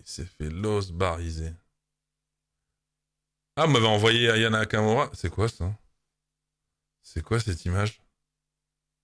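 A man speaks with animation into a microphone, close by, in short bursts with pauses.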